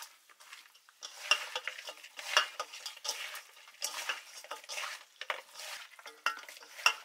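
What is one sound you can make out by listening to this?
Hands squelch and rustle through wet fish in a metal bowl.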